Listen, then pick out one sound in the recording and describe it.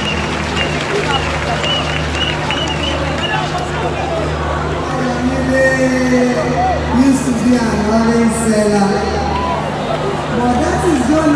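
Loud music plays through loudspeakers.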